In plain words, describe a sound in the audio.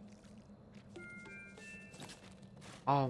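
Coins chime with short bright notes.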